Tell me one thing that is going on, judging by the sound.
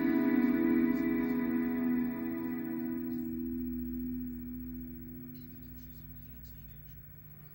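Music plays through a small television speaker and fades away.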